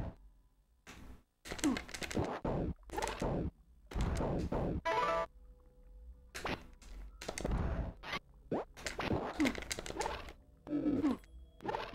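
Video game sword slashes and hit effects ring out in quick bursts.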